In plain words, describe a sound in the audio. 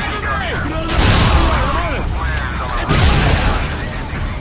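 Explosions rumble and boom.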